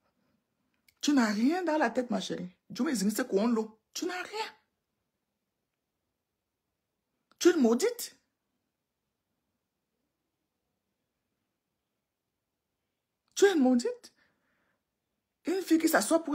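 A woman speaks calmly and close up, in short bursts with pauses.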